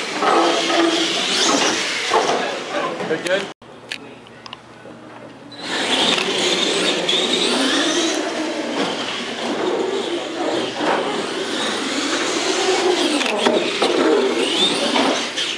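Toy truck tyres rumble on a hard floor.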